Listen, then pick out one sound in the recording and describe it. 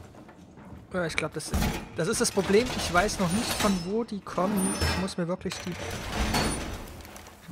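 Metal panels clank and scrape as a wall is reinforced.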